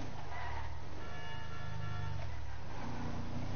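Tyres squeal as the car turns sharply.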